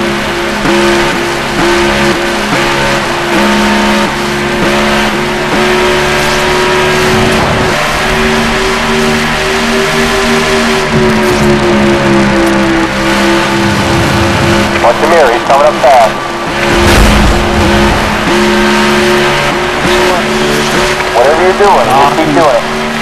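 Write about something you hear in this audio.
A race car engine roars steadily at high speed.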